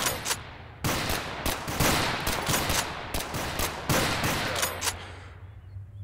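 A rifle fires single shots, each with a sharp crack and echo.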